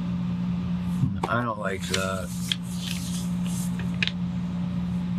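A sheet of paper rustles as it is turned.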